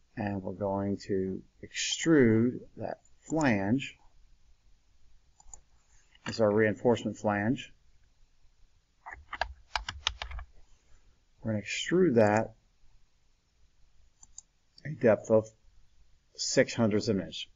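A man speaks calmly and close to a microphone, in short phrases with pauses.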